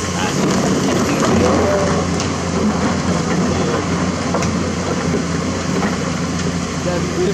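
An excavator bucket scrapes and clanks through rocks and dirt.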